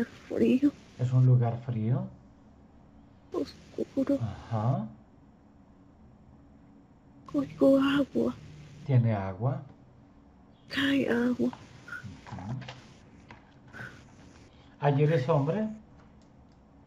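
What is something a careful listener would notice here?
A middle-aged man speaks calmly in bursts over an online call.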